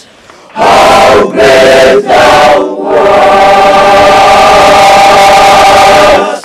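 A large male choir sings loudly in unison outdoors.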